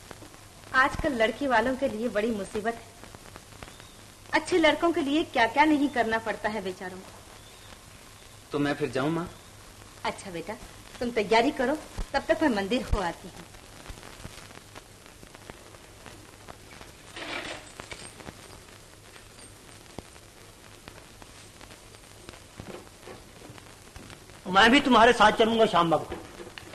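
An elderly woman talks.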